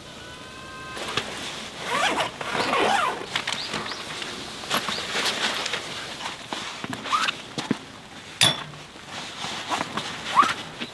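Fabric and bags rustle and rub as gear is unpacked.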